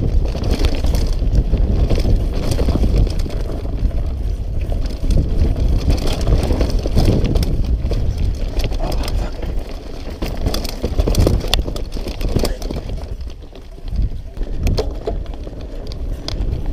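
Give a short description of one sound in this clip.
Bike tyres roll and rattle over a bumpy dirt trail.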